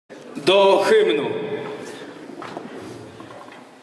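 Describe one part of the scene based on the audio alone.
A brass band plays a loud final chord that rings out in a large echoing hall.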